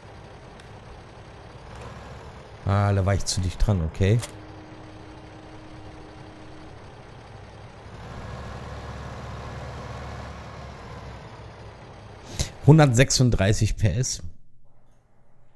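A tractor engine idles with a low steady rumble.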